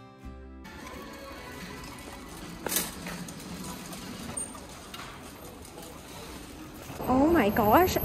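A shopping cart rolls along a hard floor.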